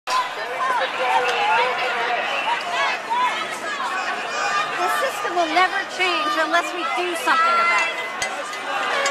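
A large crowd shouts and chants loudly outdoors.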